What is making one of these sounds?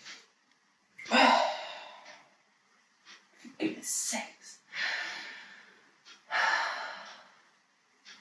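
A young woman sighs and breathes out heavily.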